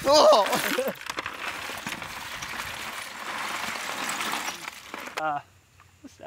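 Wet earth and shells pour from a plastic bucket onto a wire rack.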